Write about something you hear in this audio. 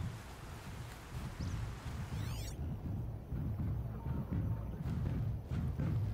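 Footsteps thud through grass.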